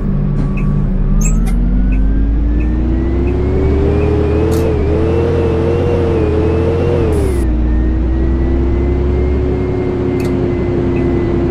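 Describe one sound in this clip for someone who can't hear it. A bus engine revs higher and higher as the bus pulls away.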